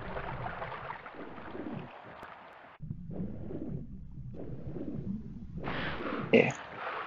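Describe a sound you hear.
Water sloshes and gurgles.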